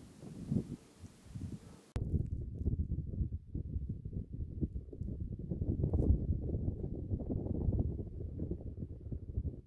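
Wind blows in strong gusts across open ground, rumbling against the microphone.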